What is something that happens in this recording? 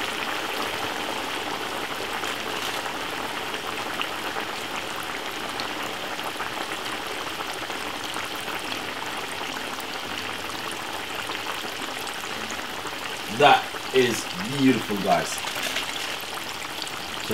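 Liquid bubbles and sizzles steadily in a pan.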